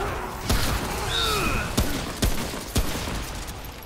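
Heavy weapon blows land with sharp thuds.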